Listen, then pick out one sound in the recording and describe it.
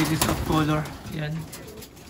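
A pigeon flaps its wings.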